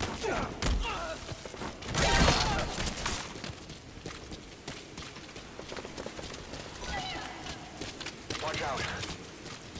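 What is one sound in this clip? Boots run on hard ground.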